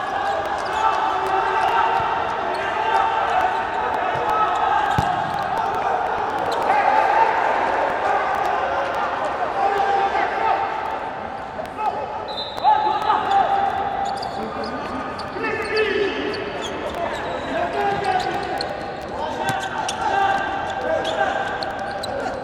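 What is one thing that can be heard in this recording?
A ball is kicked and bounces on a hard indoor court.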